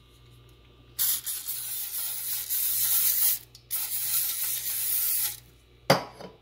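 Cooking spray hisses in short bursts from a can.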